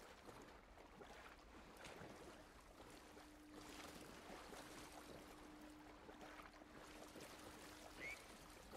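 Water splashes and swishes as someone wades through it.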